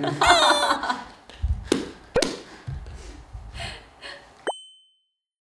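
A young woman laughs cheerfully close by.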